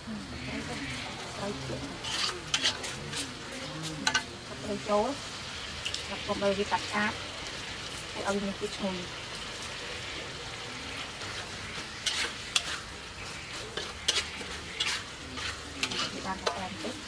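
A metal spatula scrapes and clatters against a wok.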